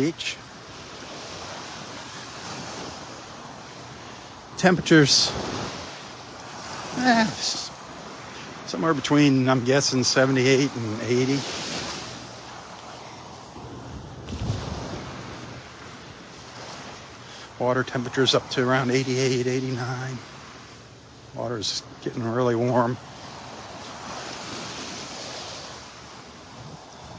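Small waves lap and wash gently onto a sandy shore.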